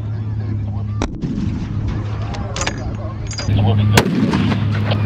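A rifle fires loud, sharp shots outdoors.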